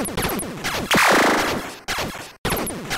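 An arcade explosion bursts loudly and fades.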